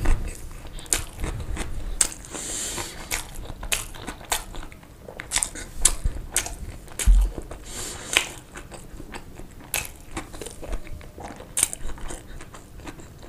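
A young man chews food wetly, close to the microphone.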